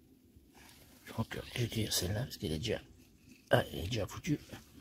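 Dry leaves rustle as a hand reaches in to pick a mushroom.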